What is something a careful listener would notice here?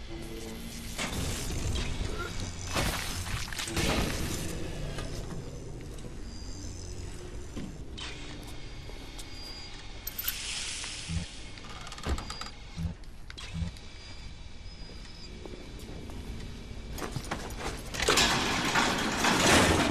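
Electricity crackles and buzzes in short bursts.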